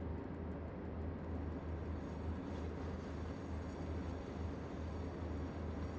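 A locomotive engine rumbles steadily from inside the cab.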